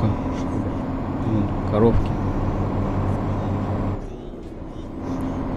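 A heavy truck engine hums steadily while driving.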